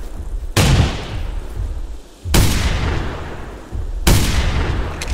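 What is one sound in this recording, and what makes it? A shotgun fires three loud booming shots that ring out.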